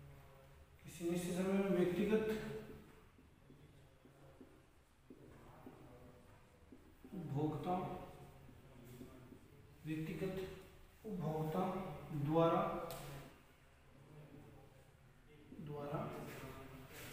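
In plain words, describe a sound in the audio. A young man speaks steadily, explaining in short phrases with pauses, close by.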